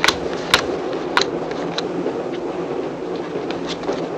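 A cloth handkerchief rustles as it is handled.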